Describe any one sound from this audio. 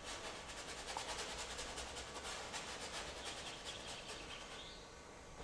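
A brush scrubs quickly against canvas.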